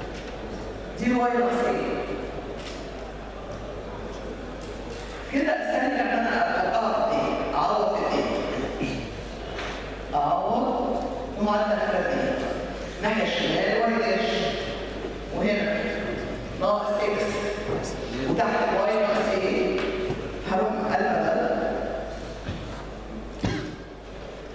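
An older woman speaks calmly into a microphone, explaining.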